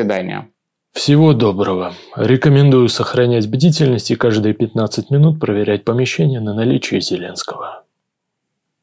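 A man speaks with emphasis, close to a microphone.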